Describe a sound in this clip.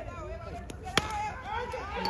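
A cricket bat cracks sharply against a ball.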